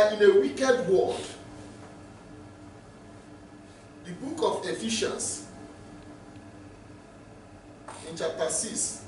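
A man preaches with feeling through a microphone, pausing between phrases.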